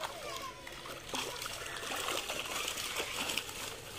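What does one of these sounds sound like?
Fish thrash and splash in a net at the water's surface.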